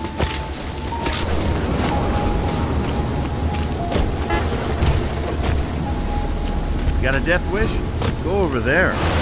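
A car engine rumbles steadily as a car drives over rough ground.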